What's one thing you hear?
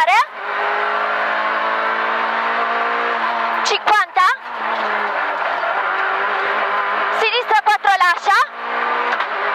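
A rally car engine revs up sharply through quick gear changes.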